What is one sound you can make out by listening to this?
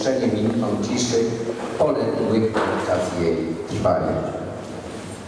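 A crowd sings together in a large echoing hall, then the singing fades.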